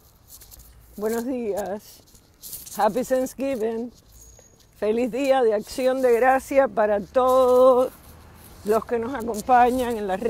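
A woman speaks close to a microphone, with animation.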